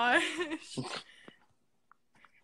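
A young woman laughs loudly over an online call.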